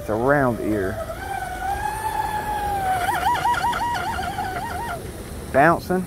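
A remote-control boat motor whines across the water.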